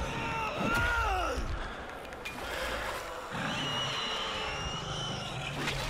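A creature shrieks and growls.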